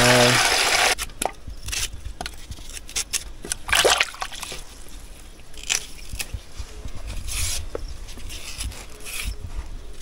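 A knife scrapes and peels skins off green bananas.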